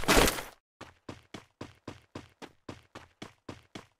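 Quick footsteps thud across a wooden floor.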